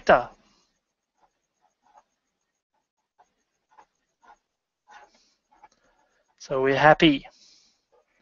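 A pen scratches on paper.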